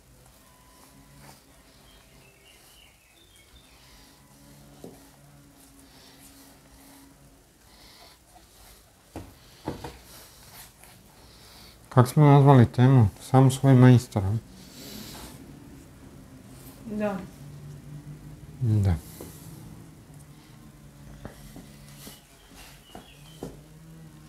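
Light knocks and taps sound on a wooden panel.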